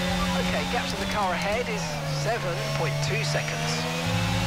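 Tyres squeal as a racing car brakes into a corner.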